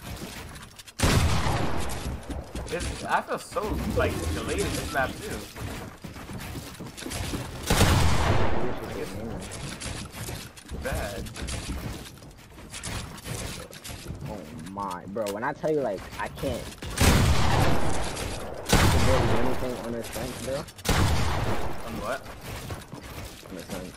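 Game gunfire and building sounds clatter in loud bursts.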